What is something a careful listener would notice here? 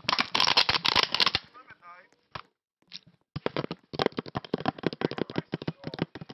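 Rapid clicking game sound effects of blocks being broken rattle in quick bursts.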